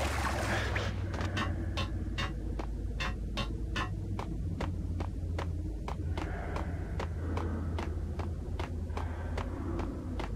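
Footsteps tread on a concrete floor.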